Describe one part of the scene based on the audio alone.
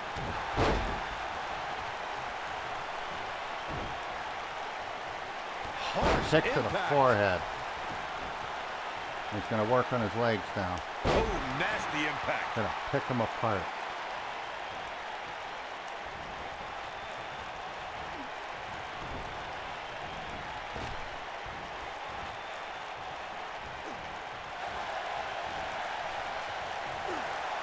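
A large crowd murmurs and cheers steadily in a big arena.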